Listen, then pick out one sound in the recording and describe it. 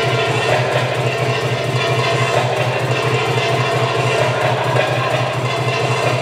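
Coins on a dancer's hip scarf jingle and shimmer.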